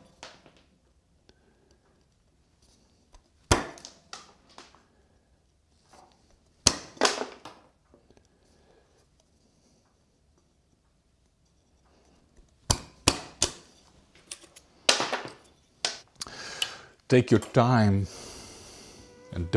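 A chisel scrapes and cuts into wood in short strokes.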